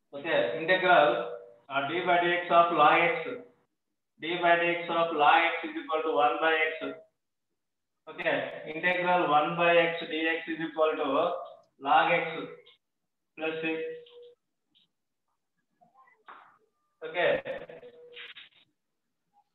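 A man speaks calmly, heard through an online call.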